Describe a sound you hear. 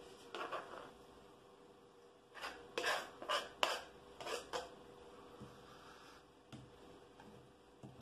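Chopped vegetables are scraped off a board into a bowl.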